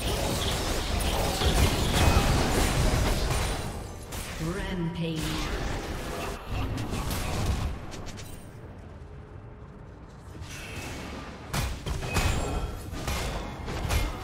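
Magic spells whoosh and crackle in a hectic fantasy battle.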